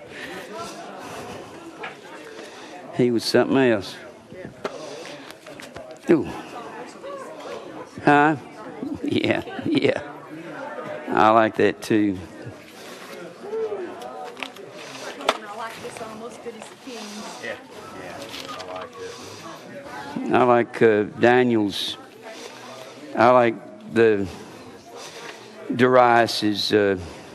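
Several people chat quietly in a room.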